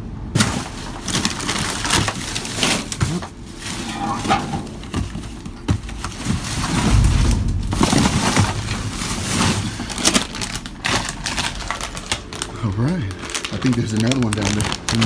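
Plastic wrappers and cardboard rustle and crinkle close by.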